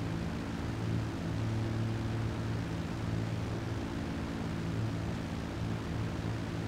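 A propeller plane's engines drone steadily and loudly.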